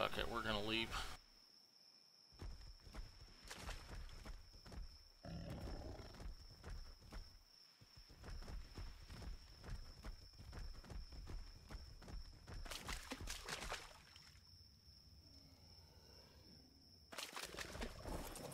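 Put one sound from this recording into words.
Heavy footsteps thud on sand.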